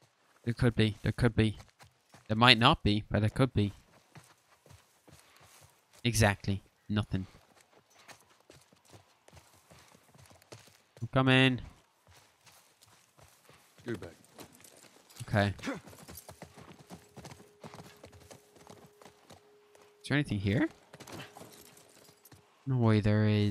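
Footsteps walk over grass and stone.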